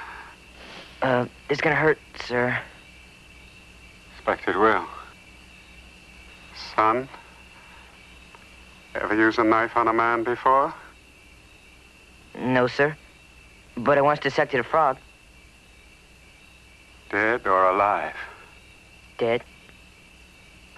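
A boy speaks softly and close by.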